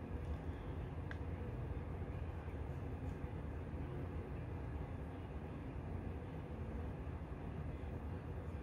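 A brush softly sweeps across skin.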